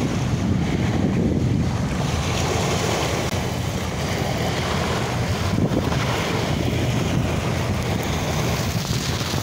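Small waves splash and wash onto a pebbly shore.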